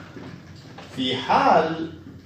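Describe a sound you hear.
A young man speaks nearby, in a calm, lecturing voice.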